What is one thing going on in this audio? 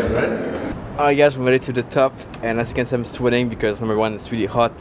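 A young man talks cheerfully and close by.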